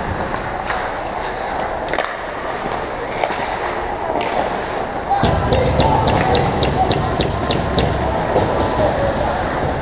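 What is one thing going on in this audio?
Hockey sticks clack sharply against the ice and the puck.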